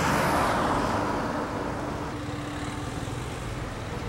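Traffic rolls along a busy street.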